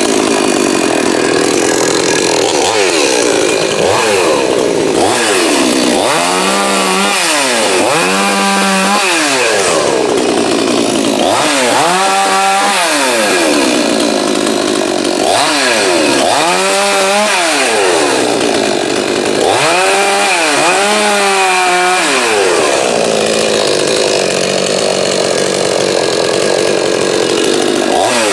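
A chainsaw runs loudly and close by, revving up and down again and again.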